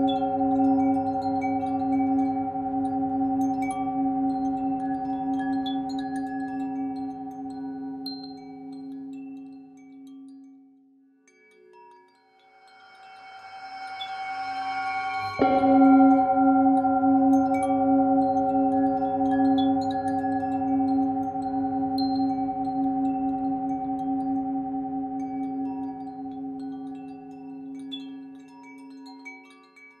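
A metal singing bowl rings with a long, deep, humming tone that slowly fades away and then swells again.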